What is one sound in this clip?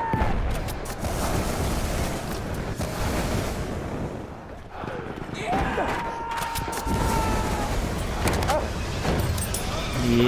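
A rifle fires several shots.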